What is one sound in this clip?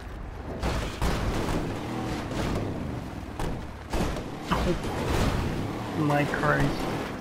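A vehicle crashes and thuds against rocks as it tumbles.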